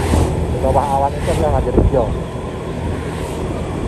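A motor scooter rides past close by.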